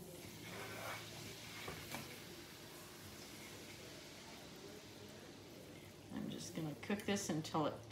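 Liquid pours into a pan.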